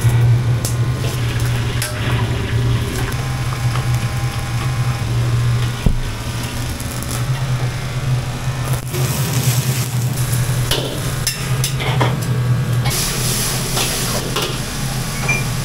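Food sizzles in a hot wok.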